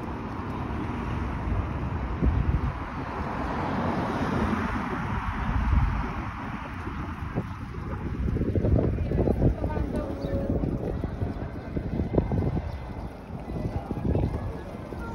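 Wind blows against a microphone outdoors.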